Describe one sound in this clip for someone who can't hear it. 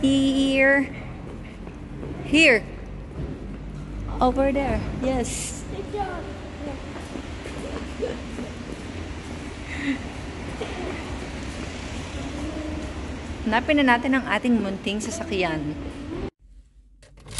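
A young boy talks nearby in an echoing space.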